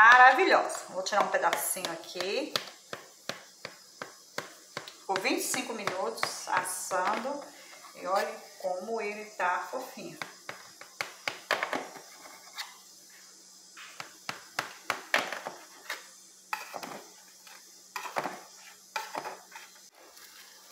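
A knife taps and scrapes against a metal pan.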